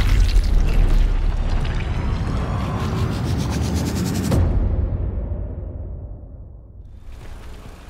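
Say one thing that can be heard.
A deep rumbling boom swells and then fades away.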